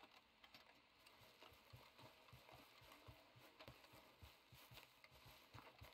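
Footsteps crunch quickly through grass and undergrowth.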